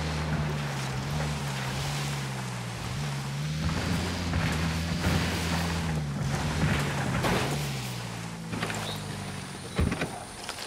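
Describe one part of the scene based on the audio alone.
A car engine rumbles steadily as the vehicle drives over rough ground.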